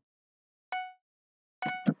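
A short bright chime rings.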